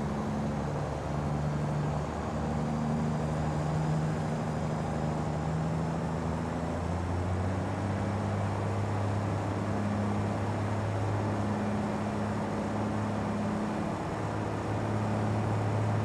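Tyres roll and hiss on a road surface.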